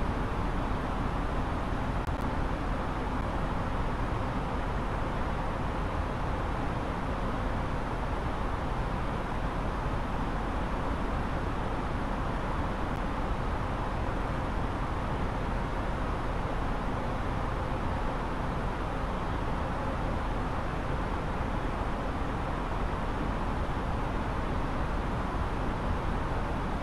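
Aircraft engines roar with a steady, even rush of wind noise.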